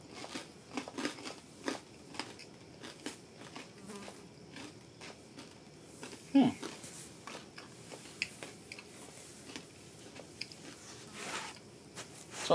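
A man crunches on snack food close by.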